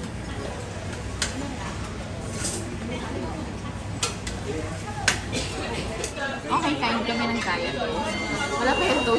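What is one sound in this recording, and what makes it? Background voices murmur in a busy room.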